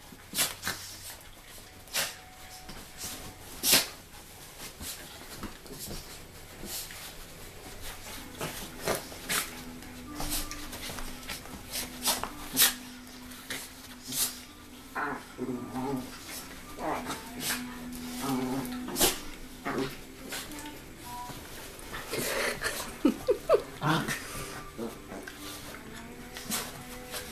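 Dog paws patter and scratch on a cushion and a wooden floor.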